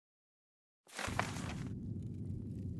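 A paper scroll rolls shut with a rustle.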